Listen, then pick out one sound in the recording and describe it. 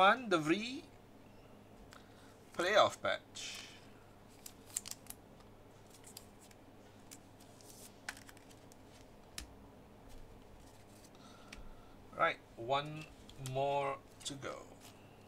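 Trading cards tap and click softly as they are handled.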